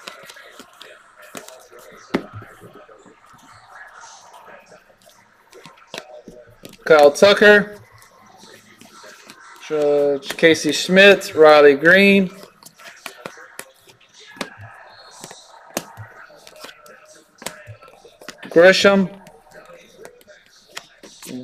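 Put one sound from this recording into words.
Trading cards slide and rustle against each other in someone's hands.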